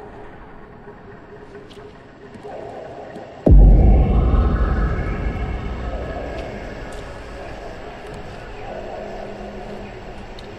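A DJ mixes electronic music with a heavy bass boom.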